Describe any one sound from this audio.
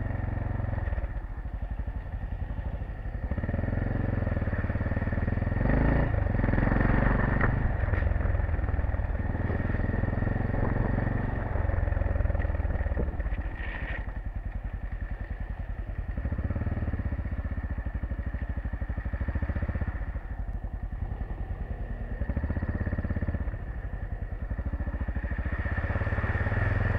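A motorcycle engine drones up close, rising and falling as it speeds up and slows.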